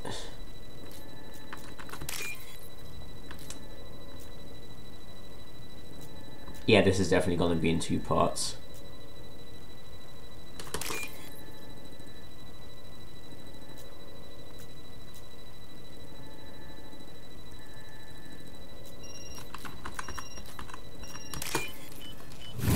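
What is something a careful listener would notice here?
Short electronic beeps and blips sound as a selection moves.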